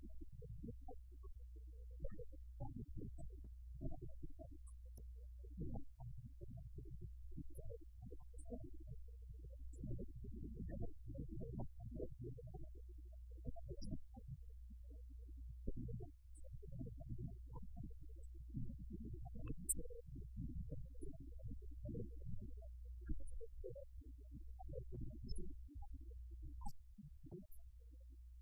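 An older man speaks calmly and steadily into a microphone.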